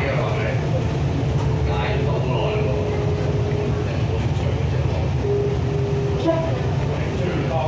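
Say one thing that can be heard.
An electric train rumbles along the track, heard from inside the carriage.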